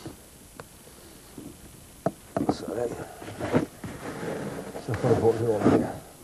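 A blade scrapes as it shaves strips from a piece of wood.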